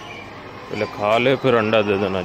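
A rooster crows loudly close by.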